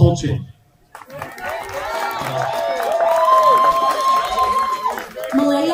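A large crowd cheers and whoops outdoors.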